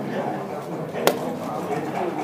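A game clock's button is pressed with a sharp click.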